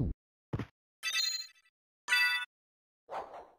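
Bright chiming game sound effects ring out.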